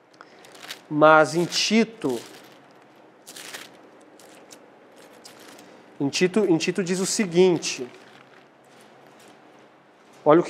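A young man reads aloud calmly through a small microphone.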